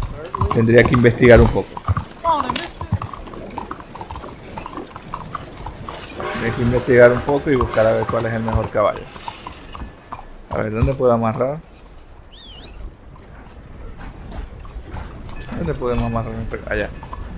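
A horse's hooves clop on cobblestones at a walk.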